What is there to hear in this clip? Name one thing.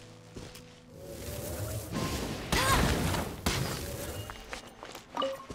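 A burst of crackling blasts rings out.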